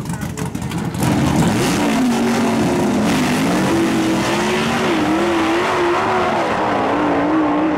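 Loud car engines roar and rev hard as they race away.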